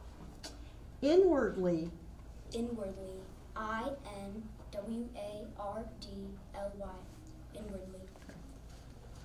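A young boy speaks into a microphone.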